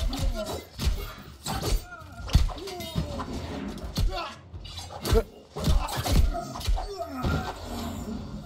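Weapons strike with sharp, heavy impacts.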